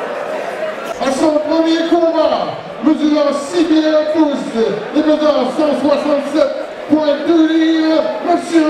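A man announces loudly over a microphone in a large echoing hall.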